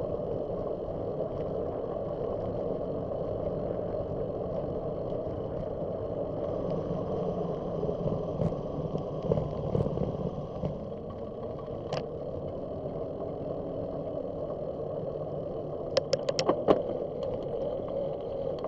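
Wind rumbles steadily against a moving microphone outdoors.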